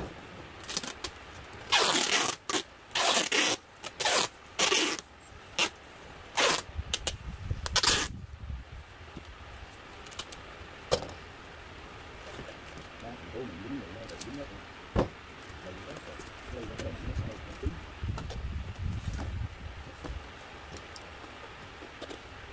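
Hands rub and press plastic wrap on a parcel.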